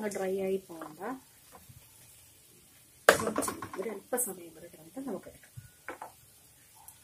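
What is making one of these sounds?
A wooden spoon scrapes and stirs food in a clay pot.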